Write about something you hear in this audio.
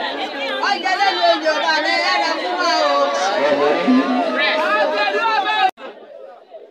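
A crowd of women sings and cheers loudly close by.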